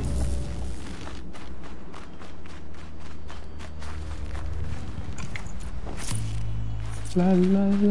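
Footsteps rustle through grass and brush.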